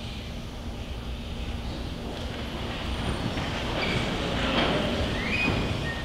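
Footsteps shuffle in a large, echoing hall.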